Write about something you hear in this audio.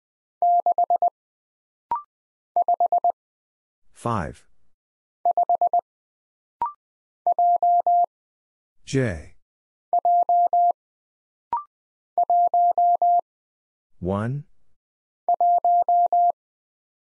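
Morse code beeps sound in quick, even bursts from a telegraph key.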